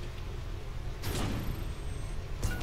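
A sudden blast bursts with a short roar.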